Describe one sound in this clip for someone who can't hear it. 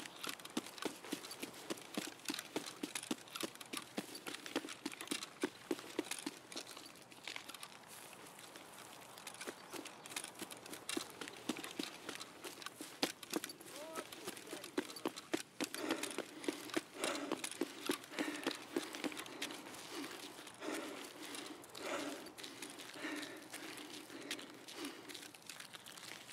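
Footsteps crunch quickly over gravel and grass.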